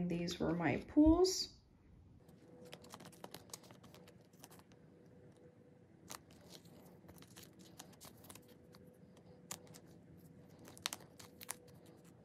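Plastic card sleeves crinkle softly as cards are handled.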